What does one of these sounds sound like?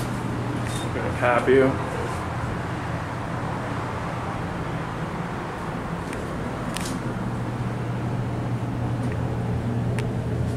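An elevator car hums steadily as it moves.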